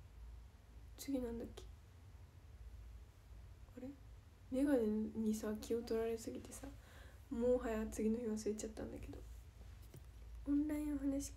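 A young woman speaks softly and casually close to a microphone.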